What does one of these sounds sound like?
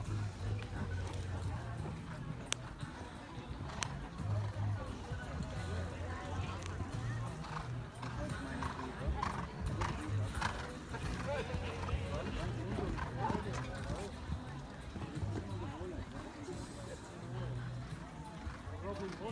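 A horse canters on sand, its hooves thudding.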